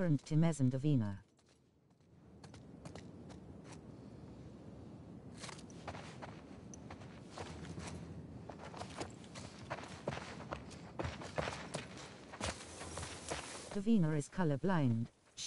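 Footsteps tread steadily.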